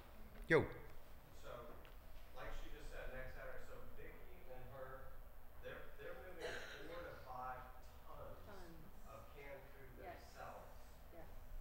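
A man speaks calmly into a microphone, heard through loudspeakers in a large echoing room.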